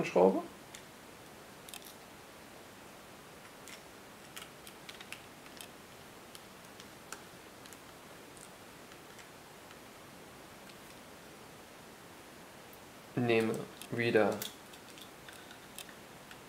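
A small screwdriver turns screws with faint clicks.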